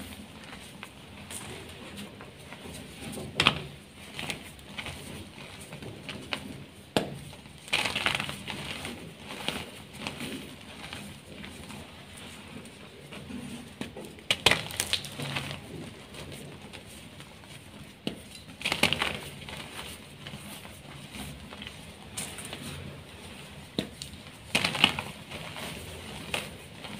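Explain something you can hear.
Fingers crumble soft chalky blocks, which crunch and crack close up.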